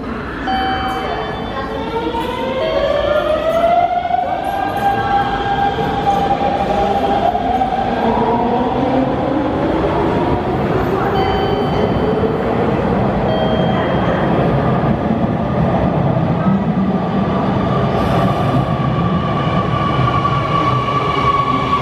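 An electric train pulls in with a rising and falling whine.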